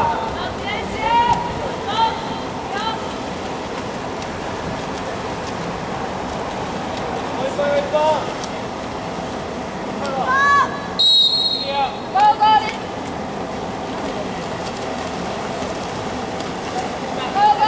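Young men shout calls across the water.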